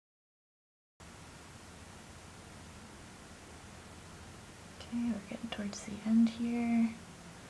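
Yarn rustles softly as a crochet hook works through it.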